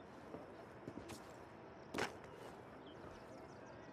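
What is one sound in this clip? Footsteps scrape across roof tiles.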